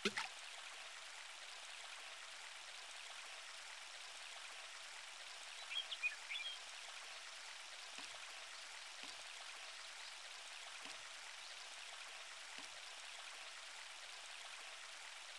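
A stream of water flows and gurgles steadily.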